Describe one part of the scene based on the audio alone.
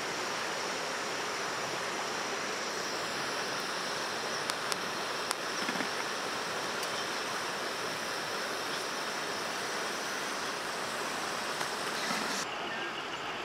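Hot oil sizzles and crackles as food fries.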